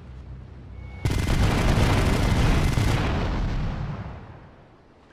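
A gun fires in a rapid, loud burst.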